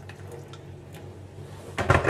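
Water pours from a kettle into a mug.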